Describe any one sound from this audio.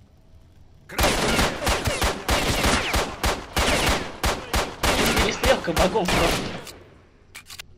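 A pistol fires several rapid shots with echoing reports.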